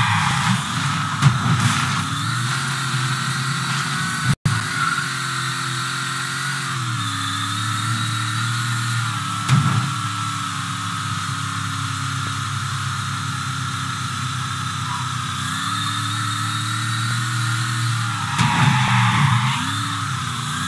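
Car tyres screech briefly while skidding through turns.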